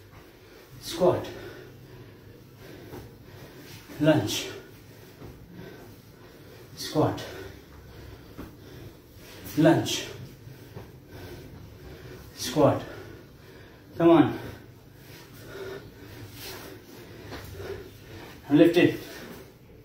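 Feet thud heavily on the floor as a man lands from jumps.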